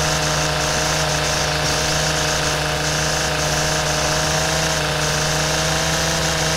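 A string trimmer cuts through grass with a high hiss.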